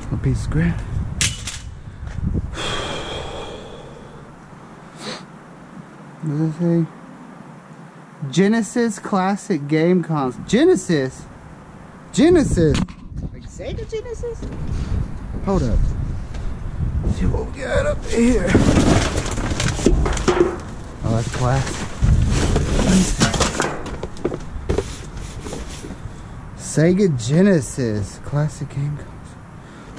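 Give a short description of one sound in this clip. Cardboard and plastic rustle and scrape as trash is rummaged through.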